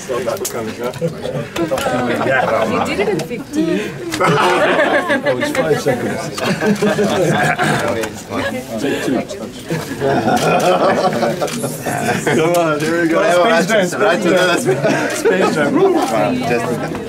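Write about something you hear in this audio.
Several men talk and laugh close by.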